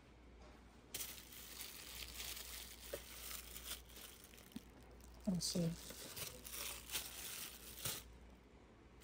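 A plastic packet crinkles as a hand handles it.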